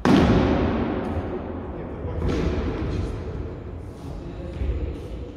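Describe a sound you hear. A swinging stick whooshes through the air in a large echoing hall.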